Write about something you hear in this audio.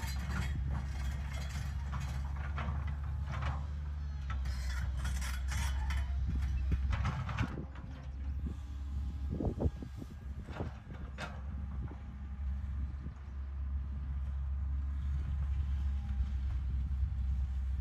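Rocks and soil scrape and clatter under a digger bucket.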